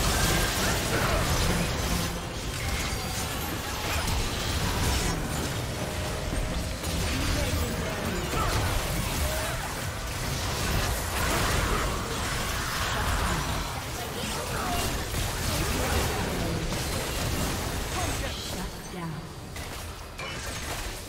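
Spell effects crackle and whoosh in a fast battle.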